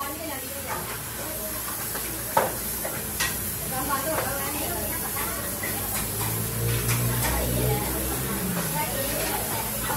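Metal pipes clank and rattle against each other.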